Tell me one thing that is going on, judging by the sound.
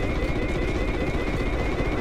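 A machine gun fires in bursts.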